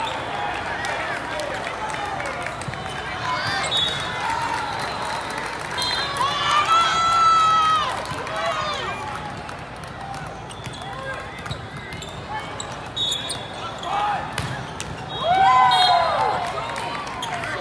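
Young boys shout and cheer in a large echoing hall.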